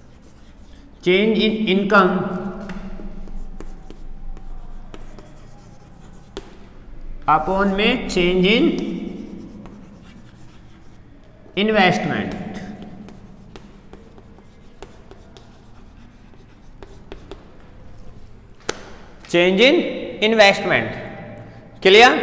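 A young man speaks in short, loud bursts with pauses between them.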